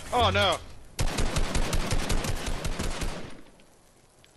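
Rapid gunshots fire in a quick burst.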